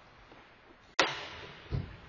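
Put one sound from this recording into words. A puck bangs sharply against the boards in a large echoing rink.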